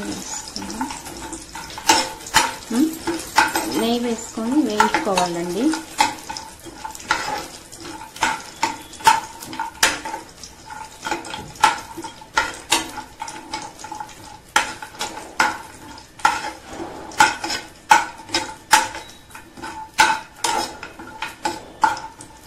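Nuts rattle and slide in a dry metal pan.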